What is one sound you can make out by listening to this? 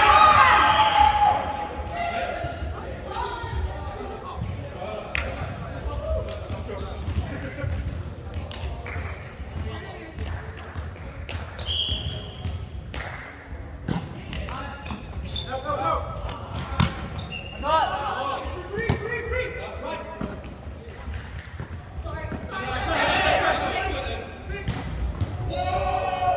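Young men call out and shout during play in a large echoing hall.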